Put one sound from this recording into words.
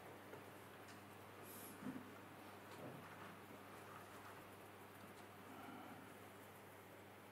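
An elderly man speaks quietly and calmly.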